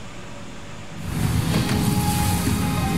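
A game's shimmering whoosh swells up and holds.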